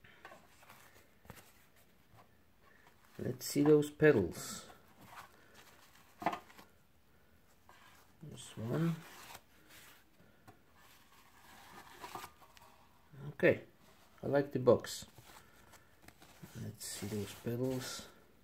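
Tissue paper rustles and crinkles in hands.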